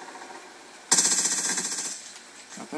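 Rapid gunfire crackles from a video game played through speakers.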